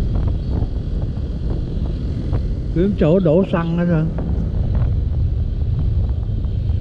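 Wind rumbles steadily against a moving motorbike.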